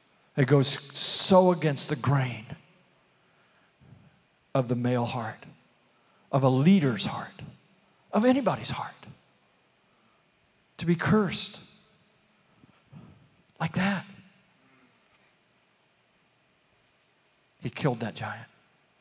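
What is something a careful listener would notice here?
An elderly man speaks with animation into a microphone, heard through a loudspeaker, with long pauses.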